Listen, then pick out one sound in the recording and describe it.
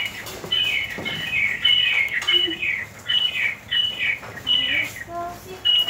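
Dishes clink.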